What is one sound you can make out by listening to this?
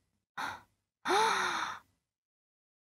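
A young woman speaks in an upset tone, close by.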